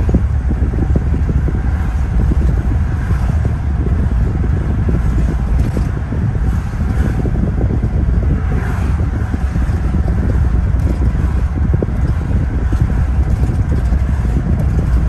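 Tyres roar steadily on the road, heard from inside a car.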